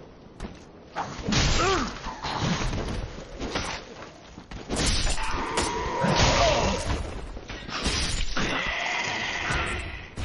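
Metal swords clash and slash in a fight.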